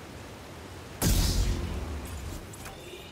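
A heavy thump lands with a deep boom.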